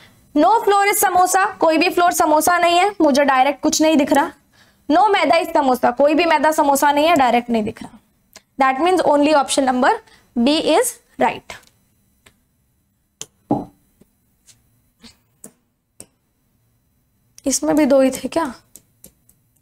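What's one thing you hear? A young woman explains with animation, close to a microphone.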